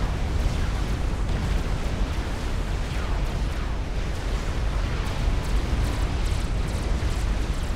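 Weapons fire and explosions rumble in a large battle.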